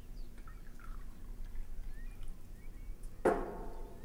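Tea trickles into a cup.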